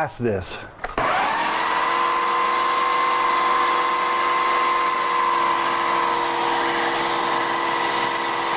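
A blender whirs loudly with a steady hum.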